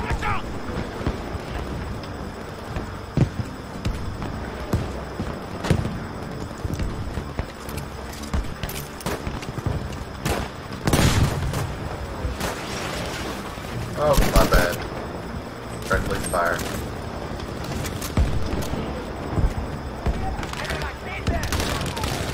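Gunfire and explosions boom from a game.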